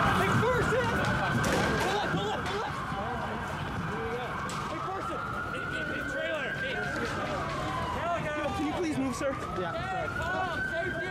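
A crowd of men and women chants and shouts close by outdoors.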